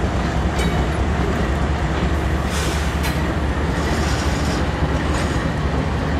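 Steel wheels clatter over rail joints.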